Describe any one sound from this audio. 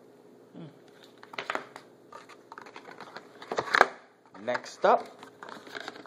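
Paper pages rustle and flip as a booklet is handled.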